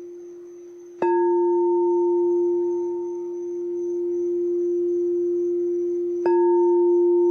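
A crystal singing bowl is struck, ringing out brightly and slowly fading.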